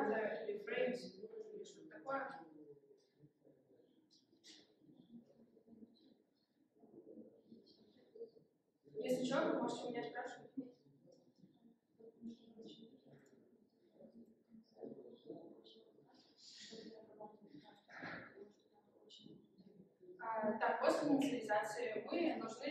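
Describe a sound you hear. A young woman speaks calmly to a group.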